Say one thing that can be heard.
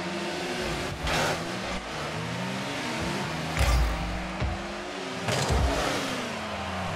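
A car's rocket boost roars in short bursts.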